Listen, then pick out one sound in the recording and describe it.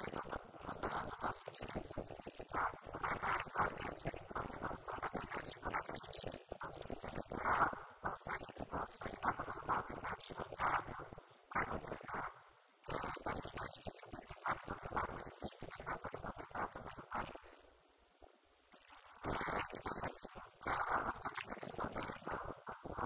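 A woman speaks calmly and with animation into a microphone, heard through a loudspeaker in an echoing room.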